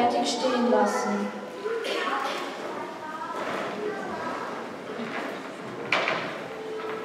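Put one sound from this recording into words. A woman speaks with animation, echoing in a large hall.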